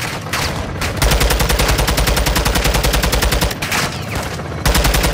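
A rifle fires rapid bursts of loud shots.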